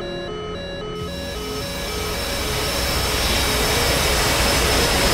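A jet engine roars and grows louder.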